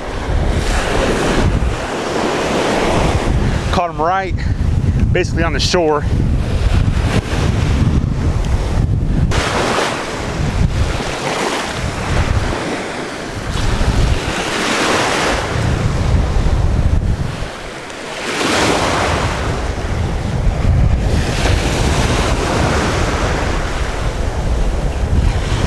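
Waves wash up and break on the shore.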